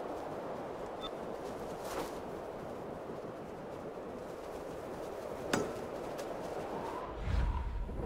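Wind rushes steadily past a bird in flight.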